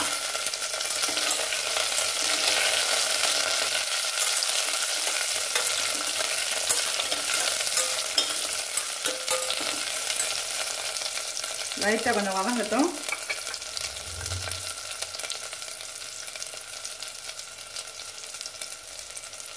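Water sizzles and hisses steadily in a pot.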